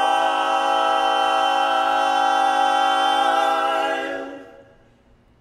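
Four men sing a loud, close harmony chord that rings out and stops.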